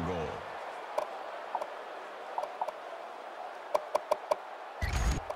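Menu selections click with short soft beeps.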